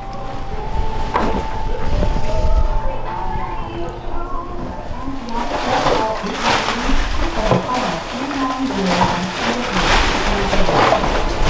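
A plastic trash bag rustles.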